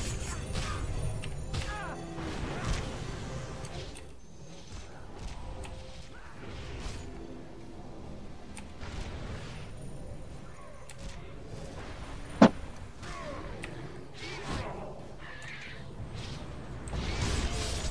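Magic spells burst and crackle in bright blasts.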